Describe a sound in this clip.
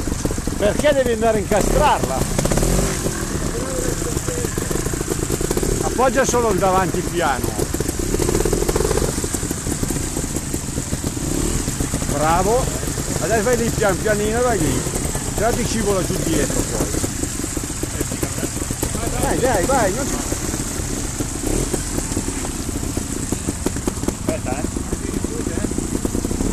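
Water trickles in a shallow stream.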